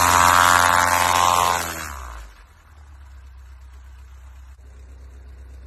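A small plane's propeller engine roars loudly close by, then quickly dies down to a low hum.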